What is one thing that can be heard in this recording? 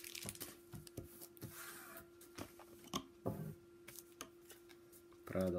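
Paper cards flick and shuffle.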